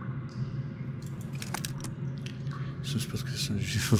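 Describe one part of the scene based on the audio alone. Paper rustles briefly.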